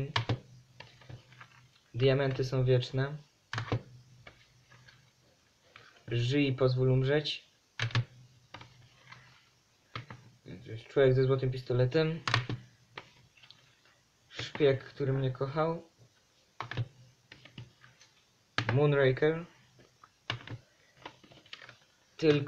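Plastic cases clack as they are set down on a stack.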